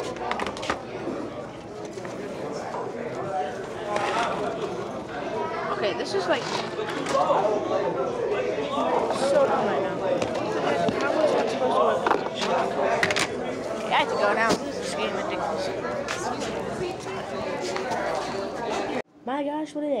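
A crowd chatters in a busy, echoing room.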